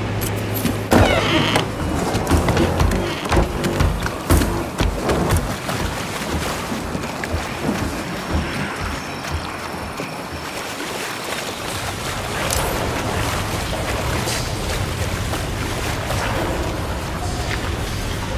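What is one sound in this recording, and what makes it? Bare feet patter quickly over wooden boards and then stony ground.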